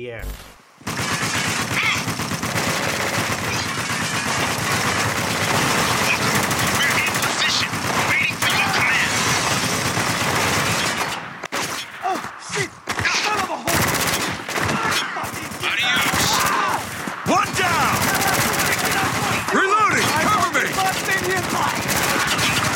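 Gunfire crackles from a video game.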